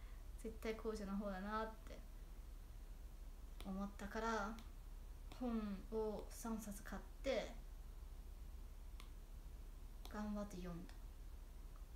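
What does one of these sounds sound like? A young woman speaks softly and playfully in short bursts, close to the microphone.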